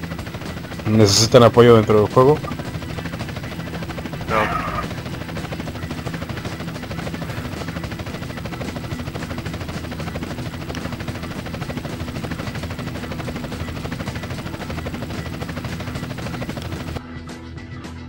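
A helicopter's rotor thumps steadily.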